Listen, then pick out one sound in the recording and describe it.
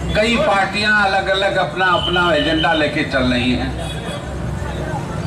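A middle-aged man speaks loudly and forcefully into a microphone, heard through loudspeakers outdoors.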